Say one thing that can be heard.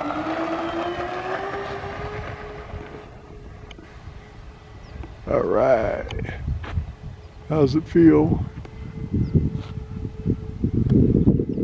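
A model plane's engine whines loudly, rising in pitch as it takes off, then fades as it climbs away.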